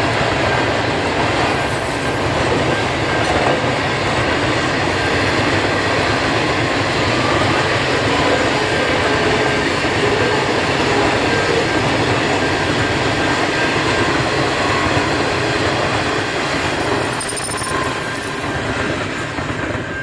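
A long freight train rumbles past, its wheels clattering steadily on the rails.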